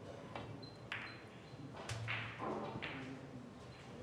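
A cue strikes a snooker ball with a sharp tap.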